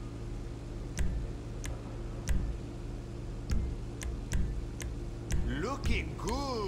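Menu selection clicks sound sharply, one at a time.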